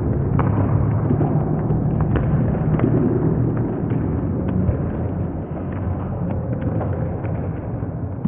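Shoes thump and patter on a wooden stage.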